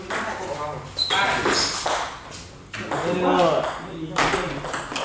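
A ping-pong ball clicks against paddles and the table.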